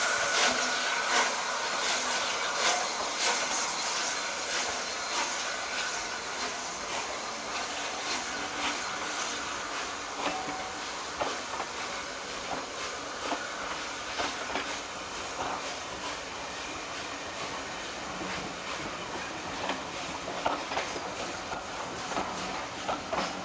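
Train carriages rumble and clatter over the rails.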